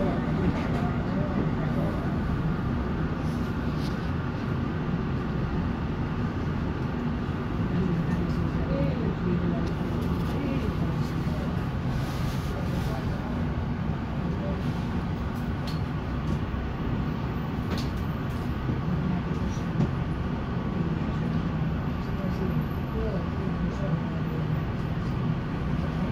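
Small rattles and knocks sound inside the tram as it rides.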